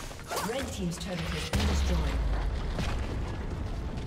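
A tower collapses with a deep, heavy boom.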